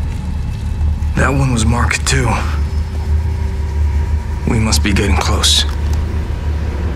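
A young man speaks tensely in a low voice.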